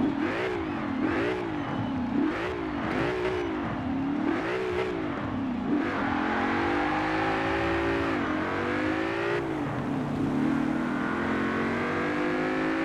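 A car engine revs up and down repeatedly while standing, then roars as the car accelerates through the gears.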